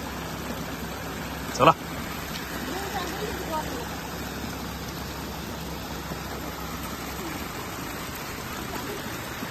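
Water trickles steadily down a small stream.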